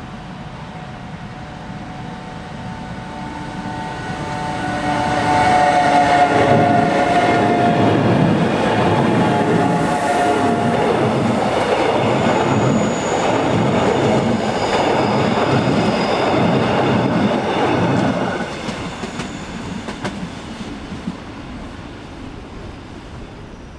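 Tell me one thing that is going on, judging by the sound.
A train approaches, rumbles past close by and fades into the distance.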